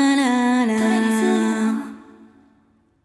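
A young woman sings a long held note into a microphone, echoing in a large hall.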